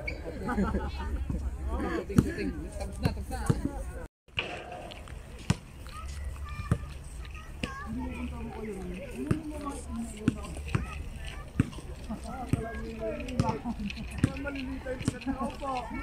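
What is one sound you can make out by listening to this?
A basketball bounces on a hard court.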